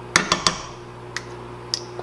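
A metal spoon clinks against the rim of a pot.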